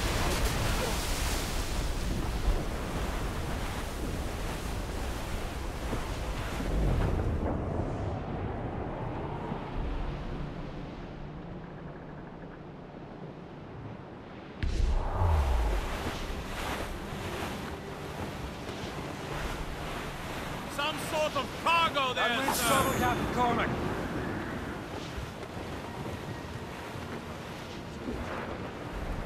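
Waves crash against a sailing ship's hull.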